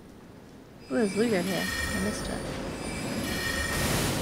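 A magic spell bursts with a crackling whoosh.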